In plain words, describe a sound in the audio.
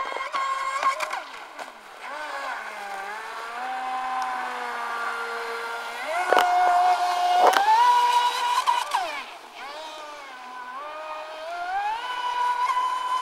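A small model boat motor whines at high pitch, rising and falling as it speeds across the water.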